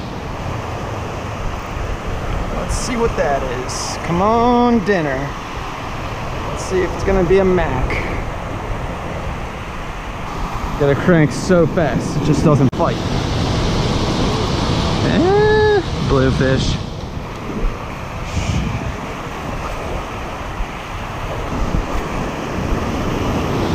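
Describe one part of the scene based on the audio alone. Waves break and wash up onto the shore.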